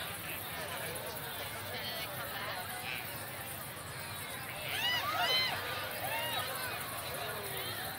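A crowd of people chatters in a low murmur outdoors.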